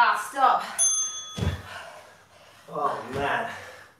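Dumbbells clunk onto a floor mat.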